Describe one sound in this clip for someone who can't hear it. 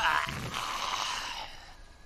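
A monster roars.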